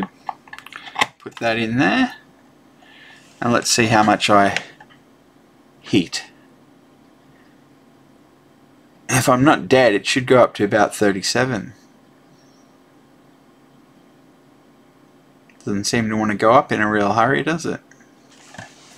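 A man talks calmly into a close microphone, in short bursts with pauses.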